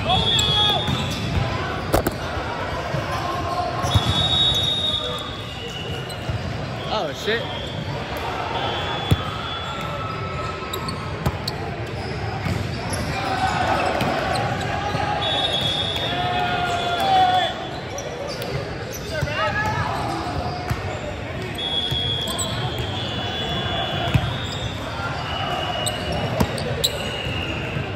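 Young men call out and chatter in a large echoing hall.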